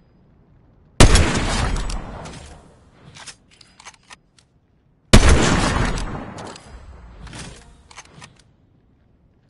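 A rifle fires two loud shots that echo and slowly fade.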